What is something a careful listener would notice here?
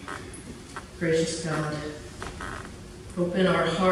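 A man speaks slowly and solemnly into a microphone.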